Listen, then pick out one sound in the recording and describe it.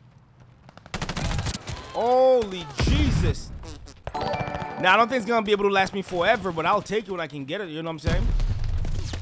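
Rapid gunshots crack from a game.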